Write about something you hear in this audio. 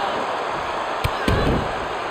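A kick lands with a sharp smack.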